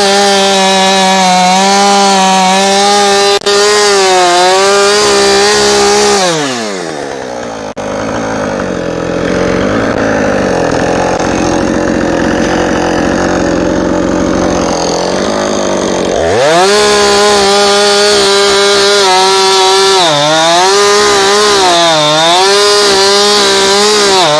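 A chainsaw engine revs loudly, then drops to a sputtering idle and revs up again.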